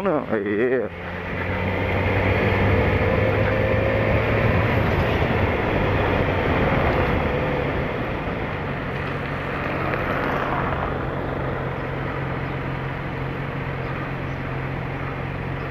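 A motorcycle engine hums steadily at low speed.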